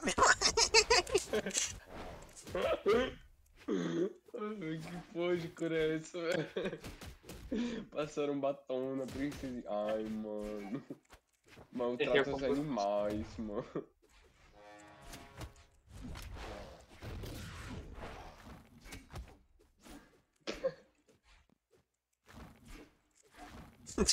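Sharp hits and whooshes of a fight crack in quick bursts.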